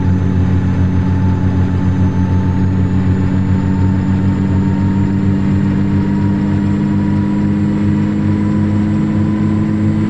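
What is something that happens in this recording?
Tyres hum on the road.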